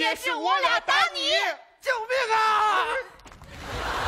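A man shouts loudly and frantically through a microphone.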